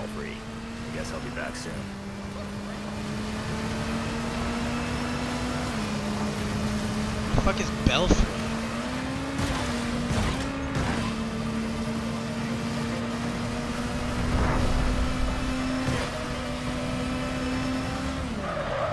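A motorcycle engine hums steadily, its pitch shifting slightly as it speeds along.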